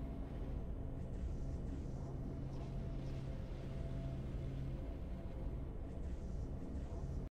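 Triumphant game music plays with a deep, steady low hum.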